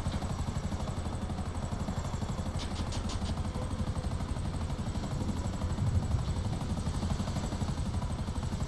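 A helicopter's rotor thumps rapidly and steadily close by.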